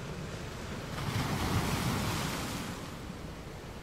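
A large wave crashes and surges loudly, then fades.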